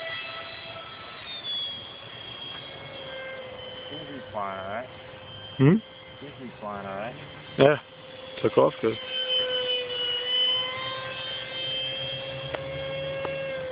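A small drone hums steadily high overhead, outdoors.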